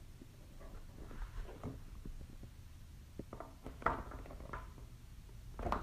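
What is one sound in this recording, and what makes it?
A sheet of paper rustles and crinkles as hands handle it.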